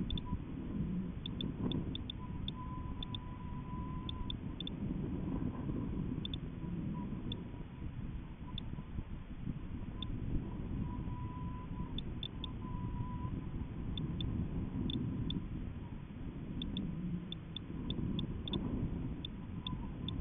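Wind buffets and rumbles against a swinging payload high in the air.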